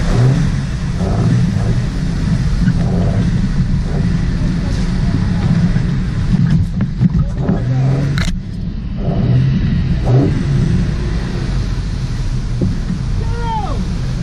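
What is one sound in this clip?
Tyres splash through muddy water.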